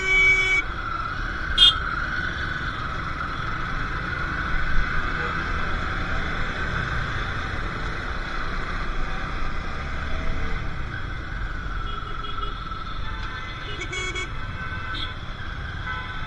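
Horns honk briefly in the traffic.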